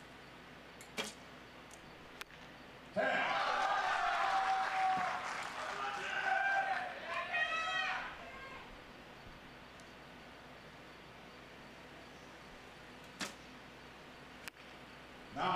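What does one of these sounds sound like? An arrow thuds into a target.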